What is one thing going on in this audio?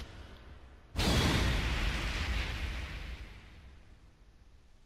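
A bright flash hits with a booming whoosh.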